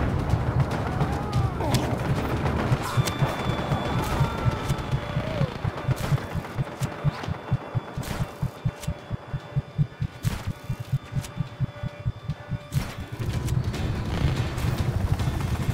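A helicopter rotor thumps overhead.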